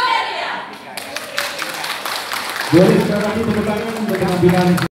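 A person claps hands nearby.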